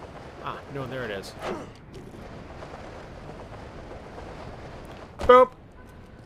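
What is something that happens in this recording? Wind rushes past during a fast fall.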